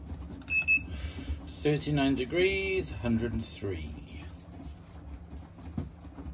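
A washing machine drum turns with a low, steady rumble.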